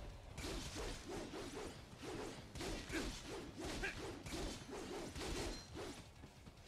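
Blades clash and slash repeatedly in a fast fight.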